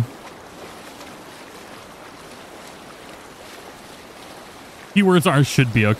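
Water splashes and rushes past a sailing boat's hull.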